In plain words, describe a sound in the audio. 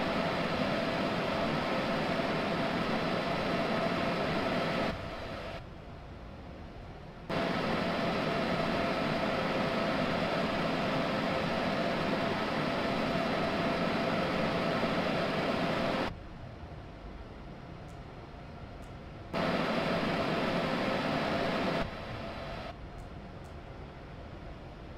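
A train rumbles steadily along the tracks, with a droning hum.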